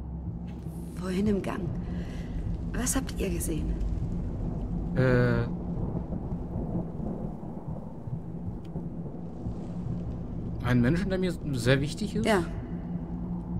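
A man talks casually and close into a microphone.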